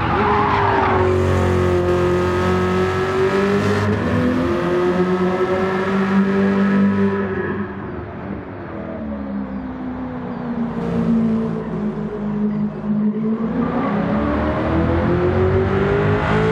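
A car engine roars loudly, its pitch rising and falling as it shifts gears.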